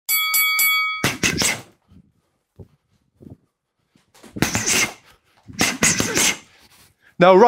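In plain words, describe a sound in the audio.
Fists thud against a heavy punching bag.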